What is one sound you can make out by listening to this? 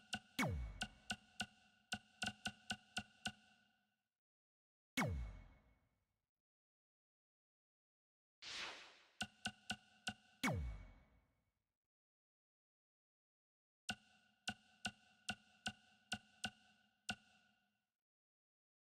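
Short electronic menu blips sound in quick runs.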